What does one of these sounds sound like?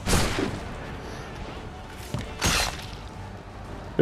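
Wooden planks crash and splinter.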